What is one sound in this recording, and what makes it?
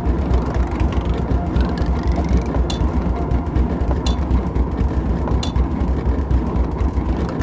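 A mine cart rumbles steadily along rails.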